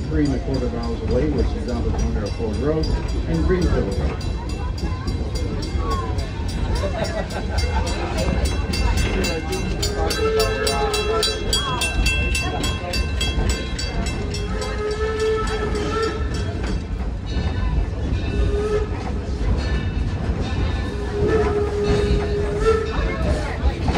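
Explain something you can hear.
Passengers chatter nearby.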